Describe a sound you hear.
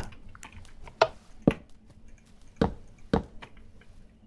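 Wooden blocks thud softly as they are placed.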